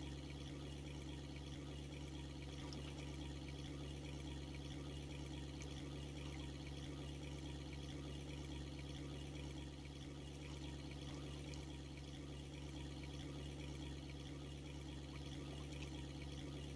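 A small boat motor hums steadily.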